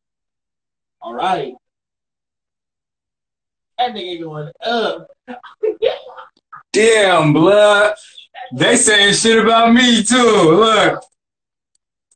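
A young man talks close to a phone microphone, with animation.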